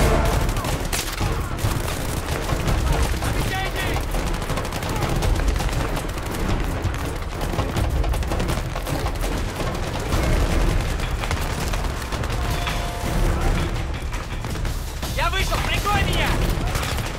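Footsteps crunch quickly over grass and gravel.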